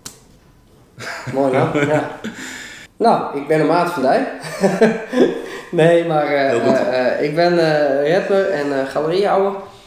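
A second man answers in a relaxed voice.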